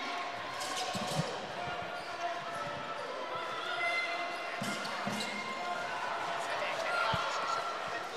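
A basketball thumps as it is dribbled.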